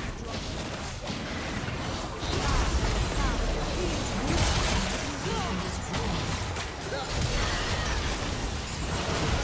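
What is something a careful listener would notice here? Magic spells whoosh and crackle in a busy game battle.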